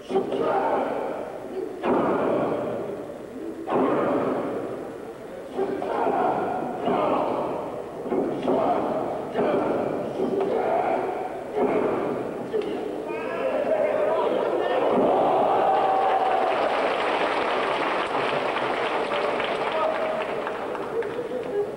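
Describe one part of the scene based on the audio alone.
A large indoor crowd cheers and roars.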